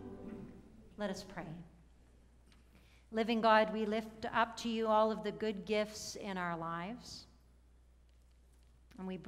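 A middle-aged woman speaks calmly into a microphone.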